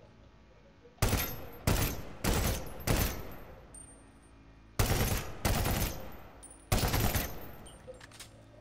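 Rifle shots crack loudly, one after another, with a ringing echo.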